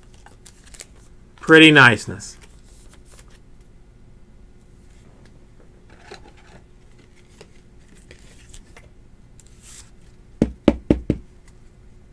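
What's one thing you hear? A card in a plastic holder rustles and taps softly as it is handled.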